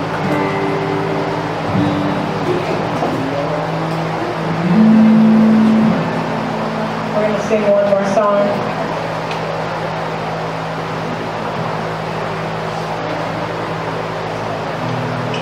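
An acoustic guitar strums steadily.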